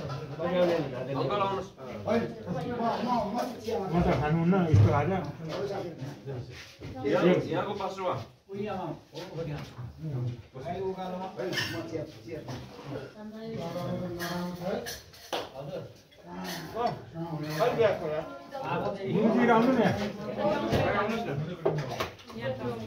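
A man speaks steadily and at length to a quiet group in a room.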